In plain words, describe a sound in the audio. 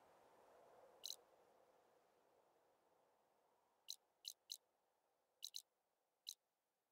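Short soft interface chimes sound several times.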